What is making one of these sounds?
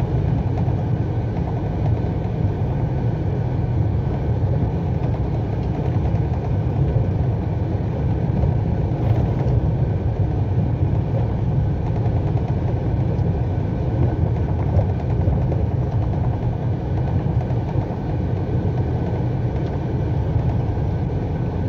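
A vehicle engine rumbles steadily as it drives along.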